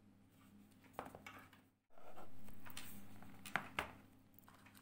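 A box lid clicks and taps as it opens.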